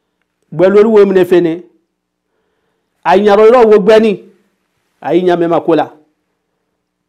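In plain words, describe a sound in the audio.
A middle-aged man speaks with animation into a microphone, in short bursts.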